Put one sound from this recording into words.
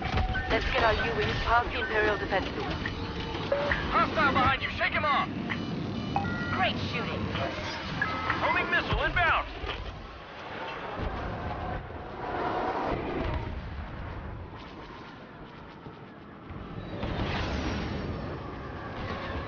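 A spacecraft engine roars.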